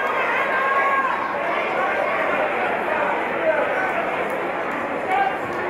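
A crowd chatters and murmurs in a large hall.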